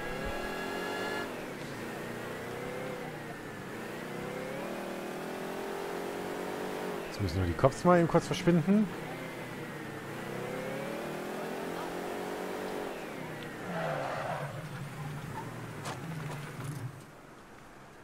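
A van's engine revs up and shifts through the gears as it drives.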